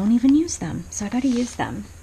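A rubber stamp taps softly on an ink pad.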